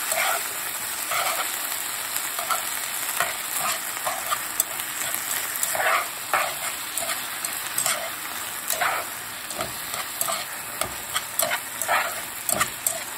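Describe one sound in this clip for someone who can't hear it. Chopsticks clack and scrape against a pan as vegetables are tossed.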